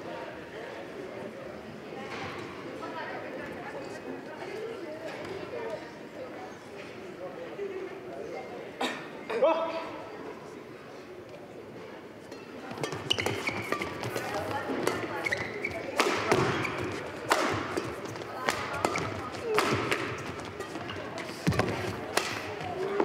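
An audience murmurs softly in the background.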